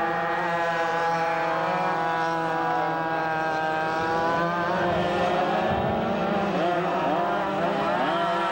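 Several go-kart engines buzz and whine loudly, rising and falling in pitch as they race past.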